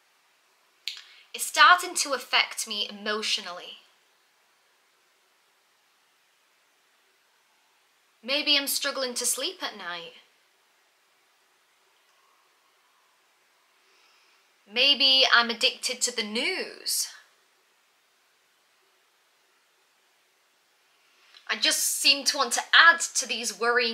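A young woman speaks calmly close to the microphone, in short phrases with long pauses.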